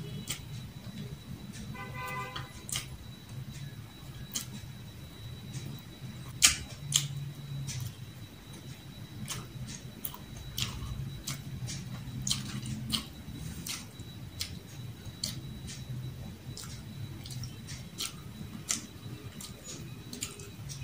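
A young woman chews food noisily close by.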